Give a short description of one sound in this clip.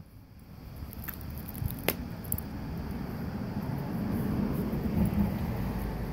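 A dog chews and gnaws on a toy.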